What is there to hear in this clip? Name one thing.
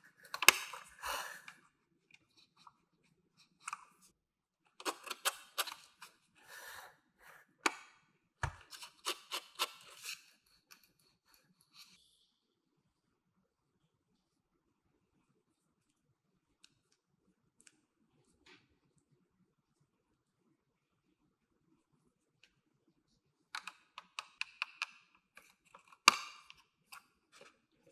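Plastic toy parts click and rattle as they are handled.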